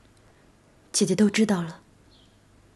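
A second young woman answers briefly and quietly.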